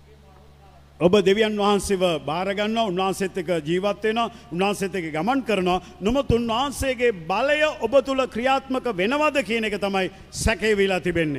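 A man's voice booms loudly over the loudspeakers.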